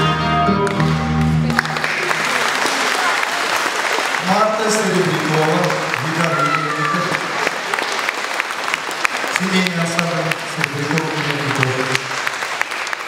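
An audience claps along.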